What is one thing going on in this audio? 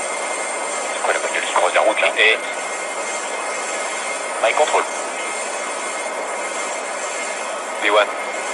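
A man speaks briefly and calmly through a crackly radio.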